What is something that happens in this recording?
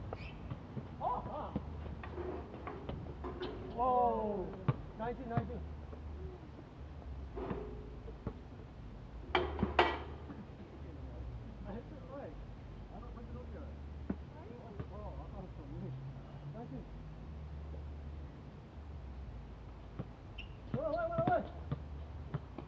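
Young men shout and call out to each other at a distance outdoors.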